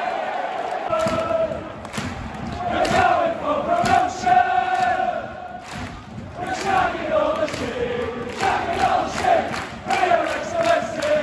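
A crowd of fans claps in rhythm.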